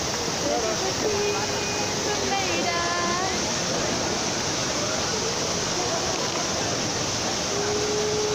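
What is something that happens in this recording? A crowd murmurs all around, outdoors.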